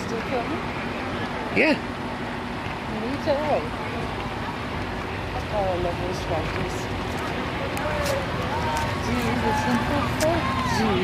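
A crowd chatters and calls out at a distance outdoors.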